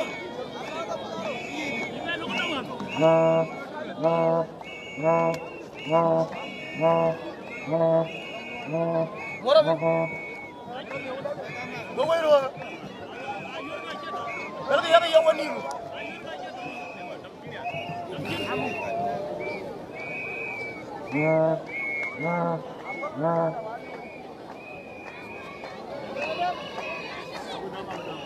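A large crowd shouts and cheers in the distance outdoors.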